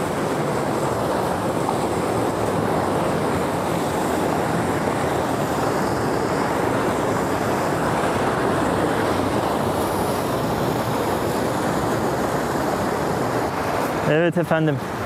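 Water gushes and splashes loudly from an outlet.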